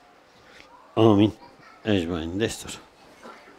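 A man chants a prayer aloud in a long, drawn-out voice.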